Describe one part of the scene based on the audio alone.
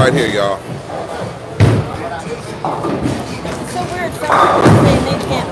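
A bowling ball rolls down a wooden lane.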